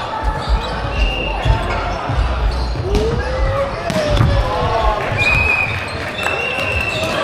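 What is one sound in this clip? A crowd of young people chatters in a large echoing hall.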